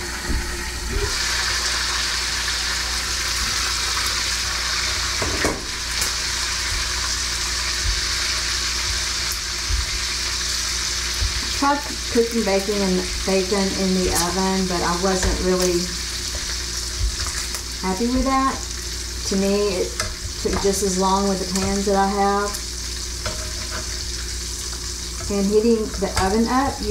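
Food sizzles steadily in a hot pan.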